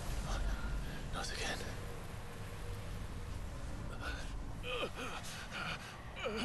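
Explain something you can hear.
A young man speaks quietly in a strained voice.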